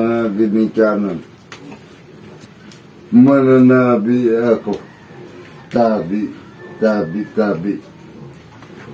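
A man speaks up close, in a chanting, sing-song way, in short bursts.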